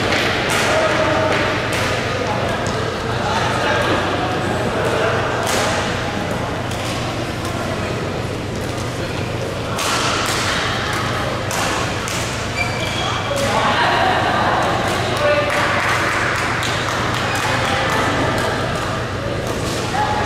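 Many players chatter and call out in a large echoing hall.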